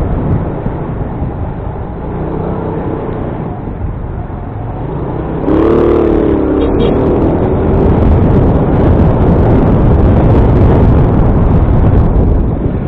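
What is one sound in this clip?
A motorcycle engine hums close by, getting louder and revving midway.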